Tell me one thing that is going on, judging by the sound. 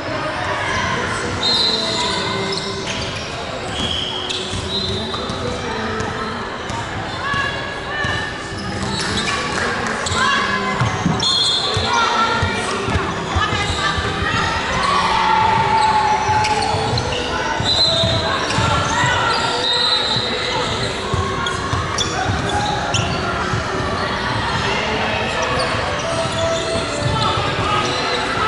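Young women call out to each other, echoing in a large hall.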